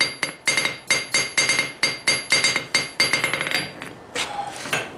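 A hammer strikes a steel anvil rapidly, each blow ringing brightly.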